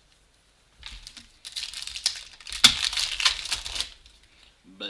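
A foil wrapper crinkles and tears loudly.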